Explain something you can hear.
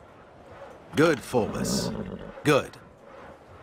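A horse whinnies nearby.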